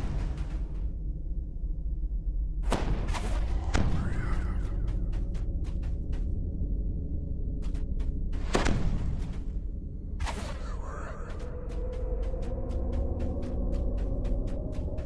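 Magical spell effects whoosh and crackle in bursts.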